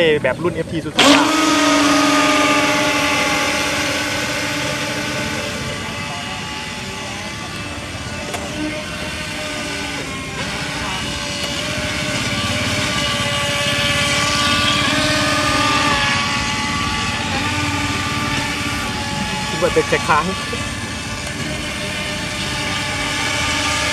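A small electric boat motor whines steadily as it speeds across the water, its pitch rising and falling.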